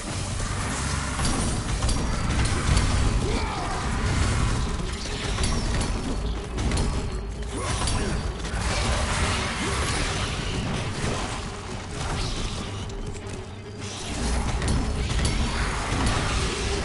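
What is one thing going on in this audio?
Blades strike giant creatures in rapid, heavy blows.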